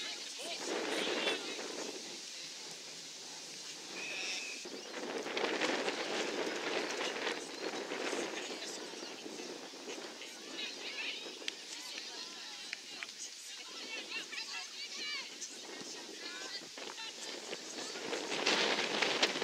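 Women players call out to each other across the field.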